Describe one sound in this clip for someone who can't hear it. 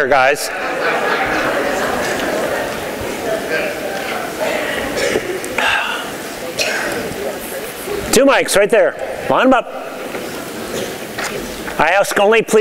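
A middle-aged man speaks through a microphone to an audience.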